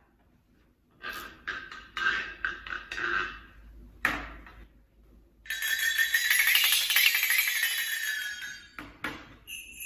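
Small metal percussion instruments are struck and jingle.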